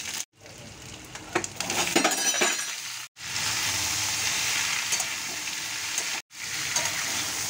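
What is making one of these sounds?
A metal spatula scrapes and stirs against a pan.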